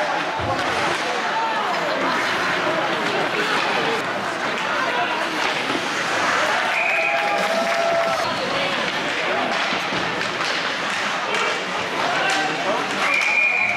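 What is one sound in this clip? Skates scrape across the ice.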